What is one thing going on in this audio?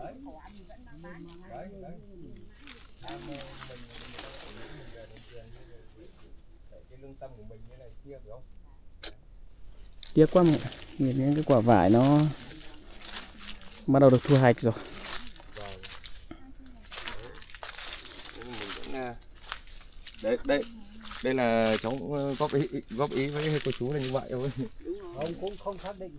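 A man speaks with animation close to the microphone.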